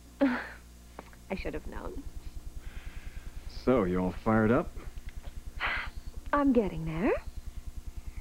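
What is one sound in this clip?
A young woman talks warmly on the phone.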